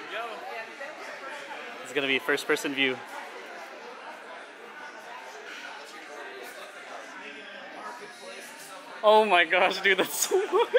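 People chatter quietly in the background.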